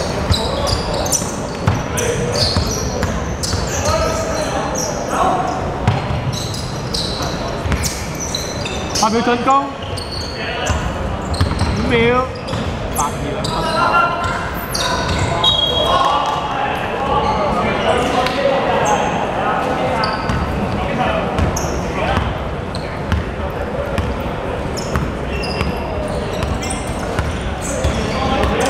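Young men call out to each other across the court.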